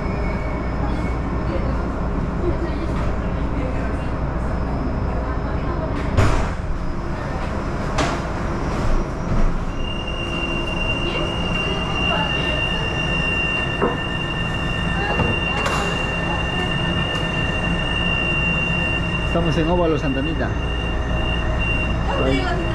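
A subway train rumbles and hums steadily.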